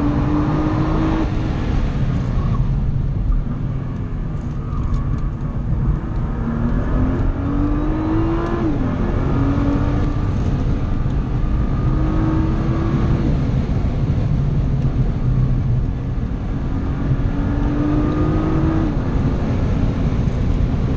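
A car engine roars loudly from inside the cabin, rising in pitch as it revs through the gears.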